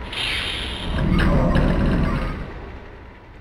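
A heavy metal door rumbles open.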